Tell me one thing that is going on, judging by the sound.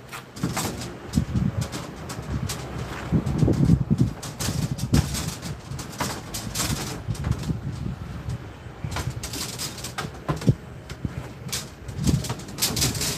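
Copper tubing clinks and rattles.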